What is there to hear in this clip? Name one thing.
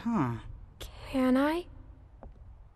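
A girl speaks hesitantly.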